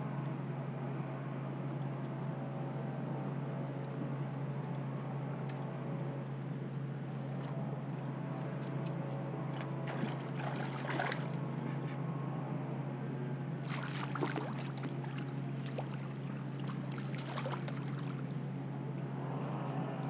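A boat engine hums steadily throughout.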